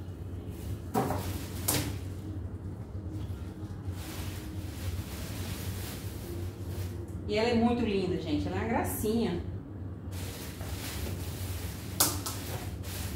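A plastic appliance knocks and thumps as a woman moves it.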